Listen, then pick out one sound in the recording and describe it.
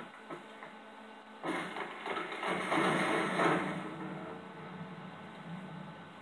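Video game music plays quietly through a television speaker.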